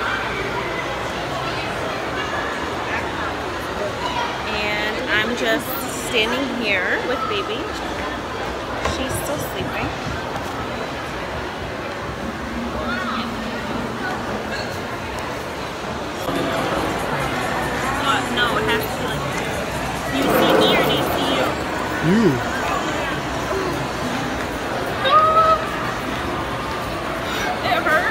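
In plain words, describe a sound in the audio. A murmur of voices fills a large echoing hall.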